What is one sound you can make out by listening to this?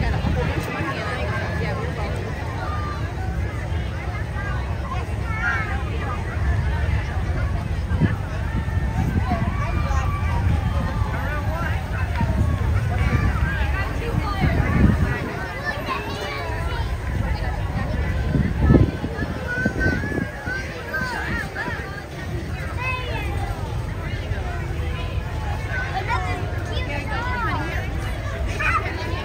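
A crowd of people chatters outdoors along a street.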